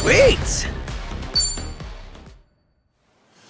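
A short bright chiming jingle plays.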